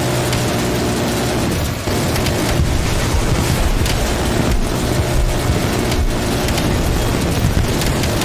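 A heavy cannon fires in rapid bursts.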